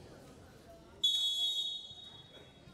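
A referee's whistle blows one short, sharp blast.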